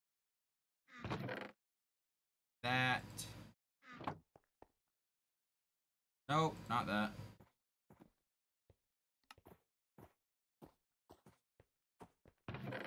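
A young man talks casually into a close microphone, in short bursts with pauses.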